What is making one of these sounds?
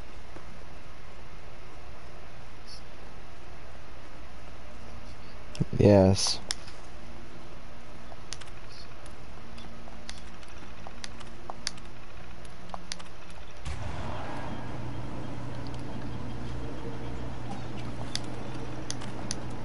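Computer keys click rapidly as text types out on a terminal.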